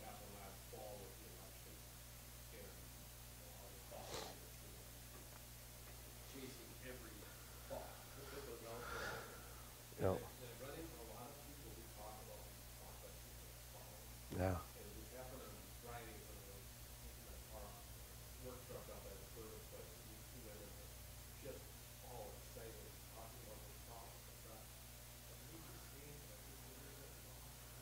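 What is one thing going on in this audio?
A middle-aged man speaks calmly through a microphone in a room with some echo.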